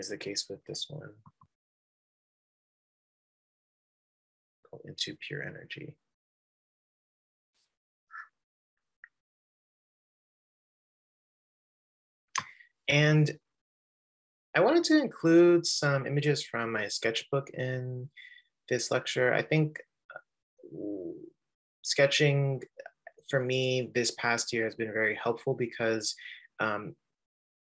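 A man speaks calmly through an online call, with pauses.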